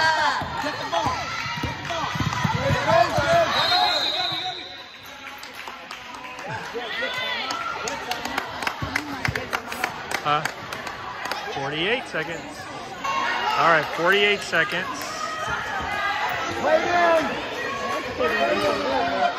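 Spectators talk and cheer close by in a large echoing gym.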